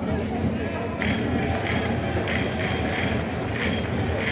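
Fans chant and clap in a steady rhythm.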